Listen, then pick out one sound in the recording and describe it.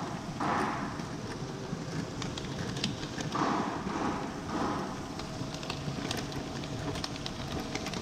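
A machine feeder runs with a steady mechanical clatter.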